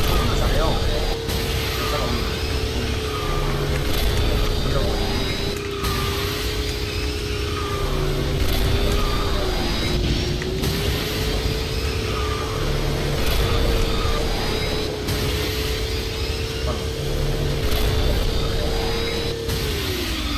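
A video game kart engine drones steadily at high speed.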